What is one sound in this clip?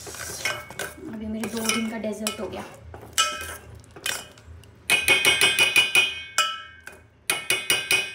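A spoon clinks and scrapes against a metal pot.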